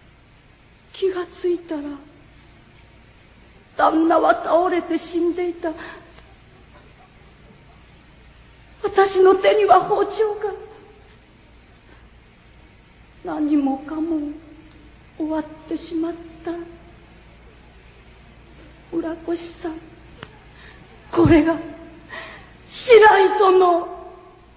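A young woman speaks dramatically in short, emotional bursts.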